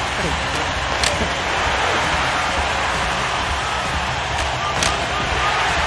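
A puck cracks sharply off hockey sticks.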